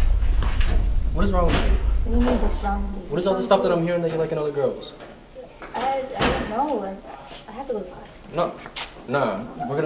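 A young woman answers a young man.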